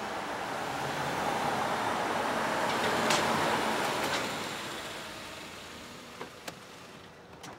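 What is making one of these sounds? A car engine hums as a car drives up and stops.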